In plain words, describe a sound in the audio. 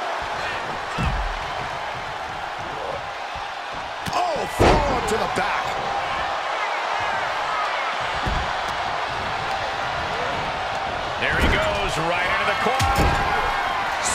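Heavy bodies slam onto a wrestling ring mat with loud thuds.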